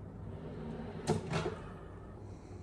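A wooden drawer slides shut with a soft knock.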